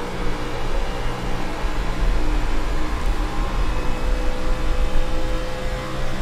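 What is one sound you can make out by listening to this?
A race car engine roars steadily at high speed.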